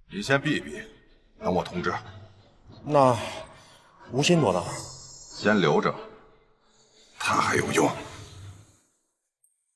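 A man speaks calmly into a phone.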